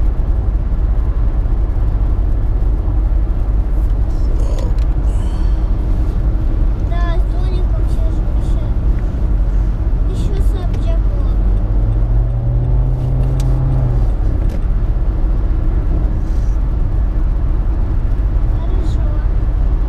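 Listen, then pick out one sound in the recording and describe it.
Traffic rushes past nearby.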